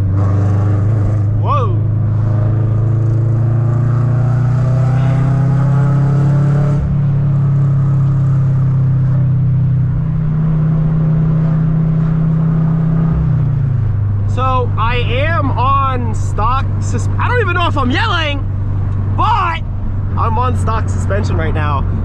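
A car engine hums steadily from inside the car, dropping in pitch as it shifts gear.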